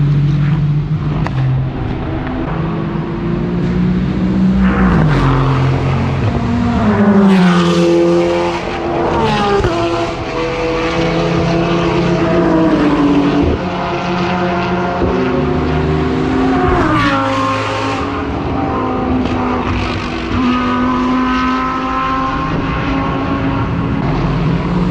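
Racing car engines roar past one after another, their pitch rising and dropping as they shift gears.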